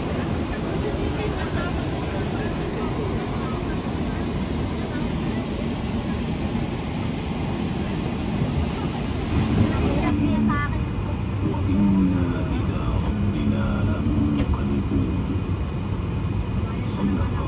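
A jet airliner's engines hum and rumble steadily.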